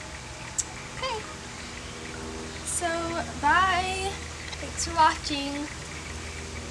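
A young girl talks brightly and close by.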